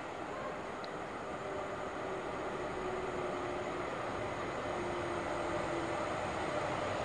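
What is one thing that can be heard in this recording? A train approaches in the distance with a low rumble that slowly grows louder.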